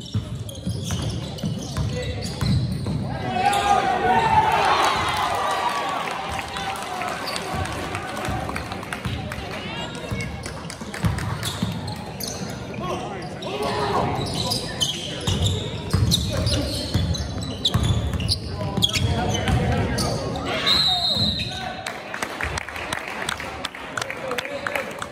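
Spectators cheer and shout in a large echoing gym.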